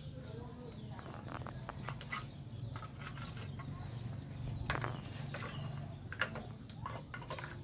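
Small plastic toys clatter and knock on a wooden floor.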